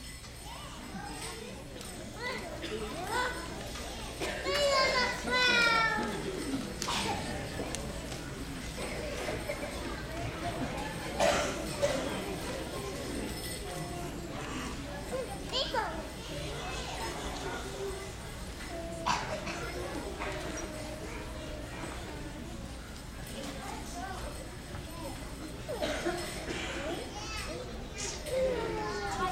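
Young children chatter and murmur in a large echoing hall.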